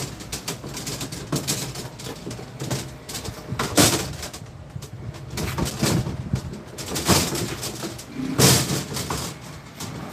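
Copper tubing rattles and clinks as it is bent by hand.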